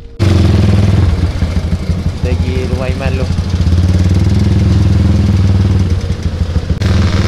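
A motorcycle engine revs loudly and roughly up close.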